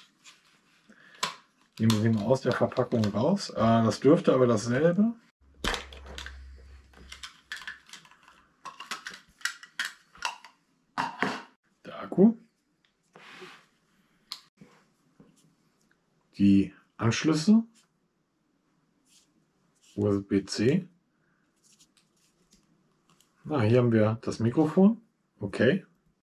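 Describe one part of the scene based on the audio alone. Small plastic parts click and snap as they are handled.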